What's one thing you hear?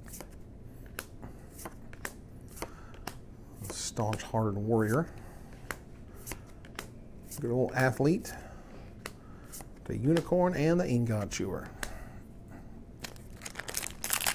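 Playing cards flick and slide against each other in someone's hands.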